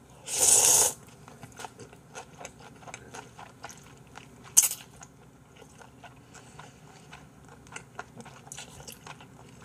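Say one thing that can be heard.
A man chews and smacks his lips softly.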